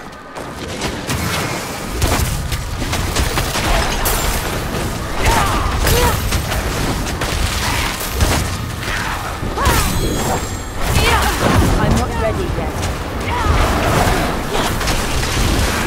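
Spells crackle and burst in quick, heavy blasts.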